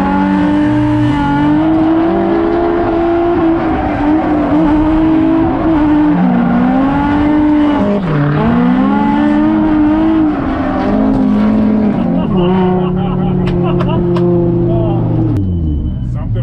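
A car engine roars and revs hard up and down, close by.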